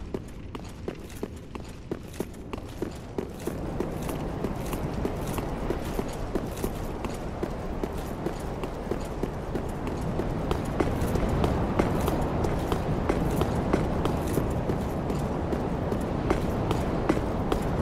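Armoured footsteps clank rapidly on stone.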